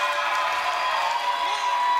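Drummers beat large drums with sticks.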